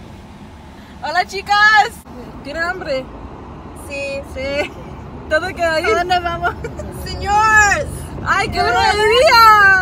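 Young women sing loudly together close by.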